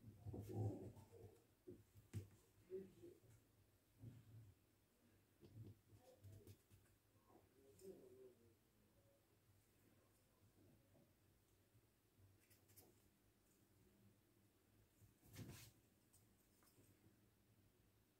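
A small cutter taps and presses softly into dough.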